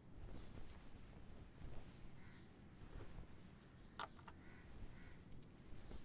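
Cloth rustles softly.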